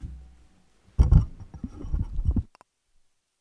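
A man adjusts a microphone, making low thumps and rustles.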